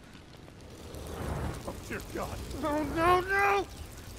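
Flames burst up with a whoosh.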